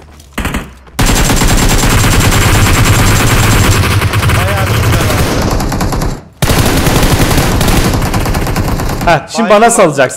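Rapid gunfire rattles on without a break.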